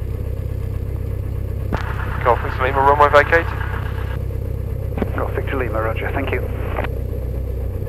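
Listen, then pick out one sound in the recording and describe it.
A small plane's engine drones steadily from inside the cabin.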